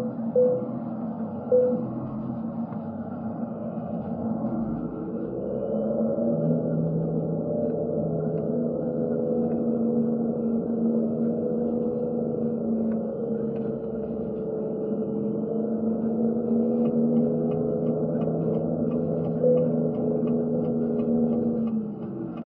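A truck engine drones steadily through loudspeakers, revving up as the truck gets moving.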